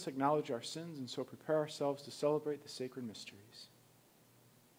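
A man speaks slowly and solemnly into a microphone.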